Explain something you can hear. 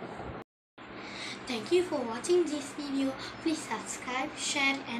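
A young girl speaks calmly and close by.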